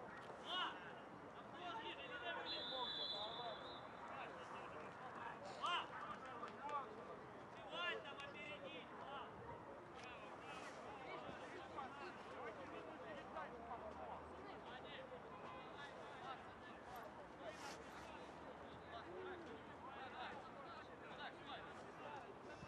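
Young men shout to each other from across an outdoor sports field.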